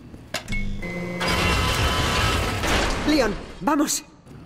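A heavy metal door grinds open.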